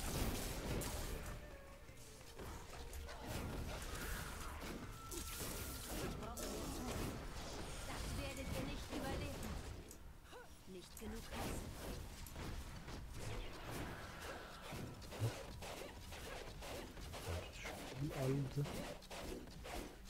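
Spells crackle and explode in quick bursts.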